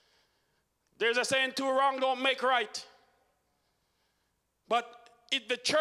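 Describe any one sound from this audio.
A man preaches with animation into a microphone, heard through loudspeakers.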